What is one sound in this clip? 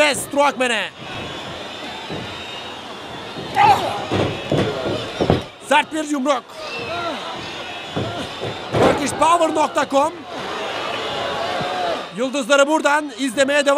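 A large crowd cheers and shouts in an echoing hall.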